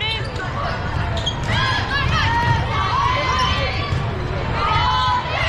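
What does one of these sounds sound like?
Young women players shout and call out in a large echoing hall.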